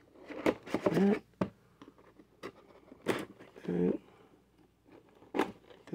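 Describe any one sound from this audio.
Cardboard packaging rustles and taps as a hand handles it.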